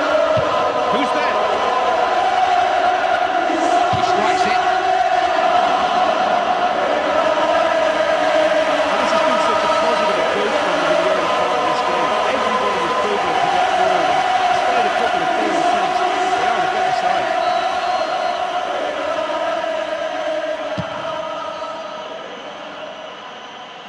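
A large crowd in a stadium roars and chants steadily, fading toward the end.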